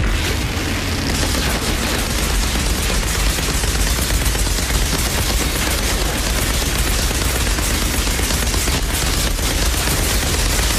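Rapid gunfire rattles without a break.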